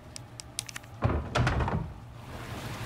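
Wooden planks knock and thud heavily.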